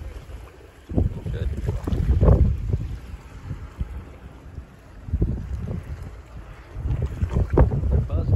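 Water laps and splashes gently against rocks.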